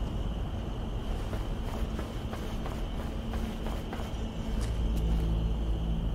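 Hands and feet clank on a metal ladder rung by rung.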